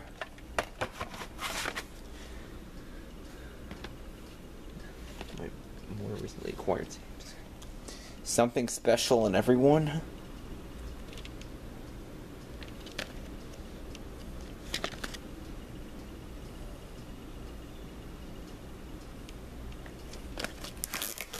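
Plastic tape cases clack and slide against each other as a hand pulls one out.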